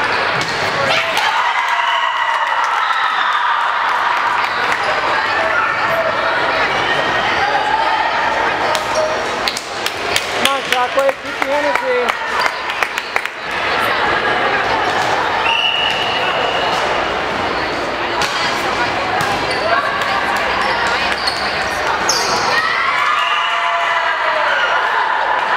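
Young women shout and call to each other in a large echoing gym.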